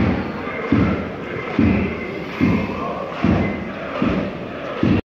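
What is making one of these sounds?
A crowd of fans chants in rhythm in an open-air stadium.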